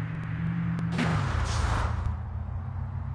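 A car crashes with a loud thud and scrape.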